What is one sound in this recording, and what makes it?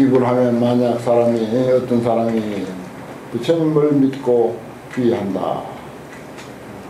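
An elderly man chants slowly into a microphone.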